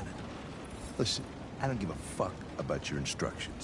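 An older man speaks gruffly.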